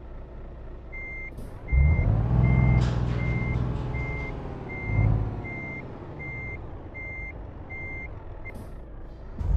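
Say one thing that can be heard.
A turn signal ticks at a steady pace.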